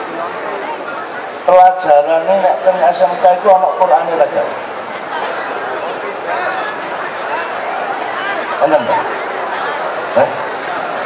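An elderly man speaks with animation into a microphone over loudspeakers.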